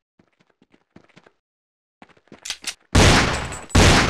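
A pistol fires a single shot.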